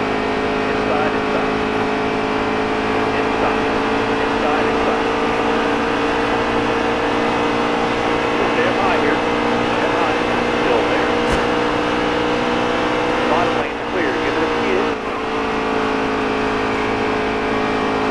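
Other racing engines roar close by as trucks pass.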